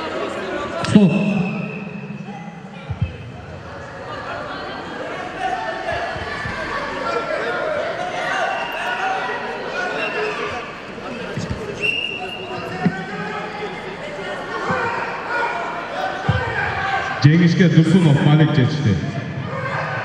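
A man shouts loudly in short bursts.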